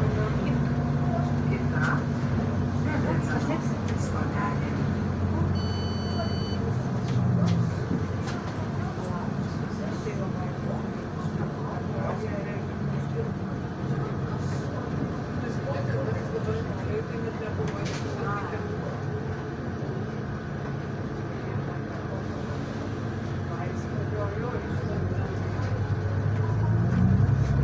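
A bus engine hums and whines steadily as the bus drives.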